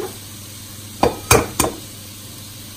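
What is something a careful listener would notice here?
An eggshell cracks against a bowl's rim.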